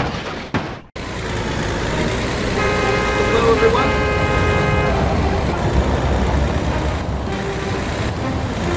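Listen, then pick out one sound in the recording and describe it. Truck engines rumble steadily.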